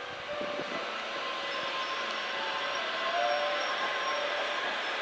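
A train rolls slowly into a station.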